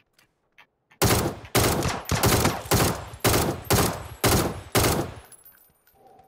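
A rifle fires a rapid series of loud shots.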